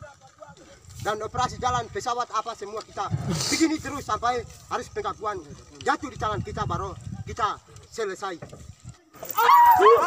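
A group of men chant and shout together outdoors.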